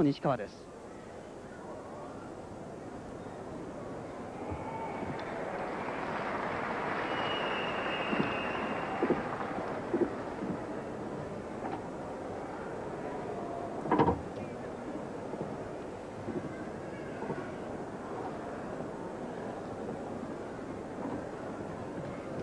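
A large crowd murmurs in a big echoing hall.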